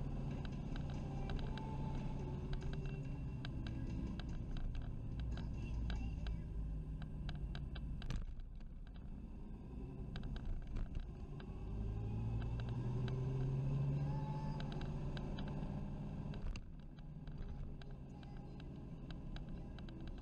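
A motorcycle engine hums steadily while riding, rising and falling with speed.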